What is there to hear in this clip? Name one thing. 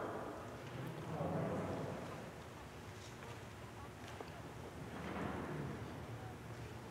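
A man speaks quietly, echoing in a large hall.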